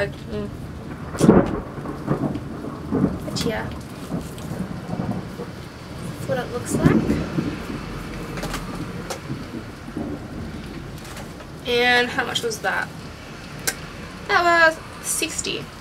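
A young woman talks with animation close by.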